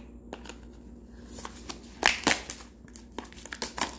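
Plastic wrapping crinkles as it is torn off a small box.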